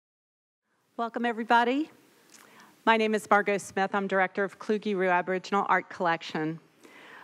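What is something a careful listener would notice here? A woman speaks calmly through a microphone in a large hall.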